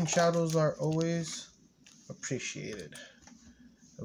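A foil card pack crinkles in a hand.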